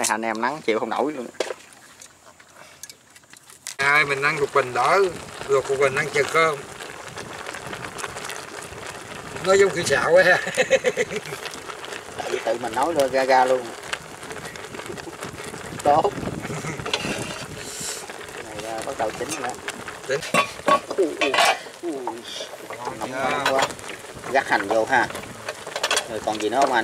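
A middle-aged man talks casually close by.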